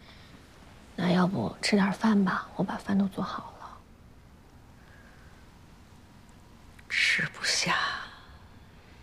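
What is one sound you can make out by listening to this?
A young woman speaks gently, close by.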